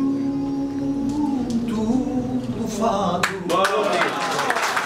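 An older man sings loudly and with feeling, close by.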